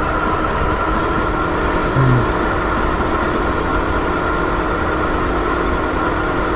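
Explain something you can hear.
A go-kart engine hums steadily as the kart races along.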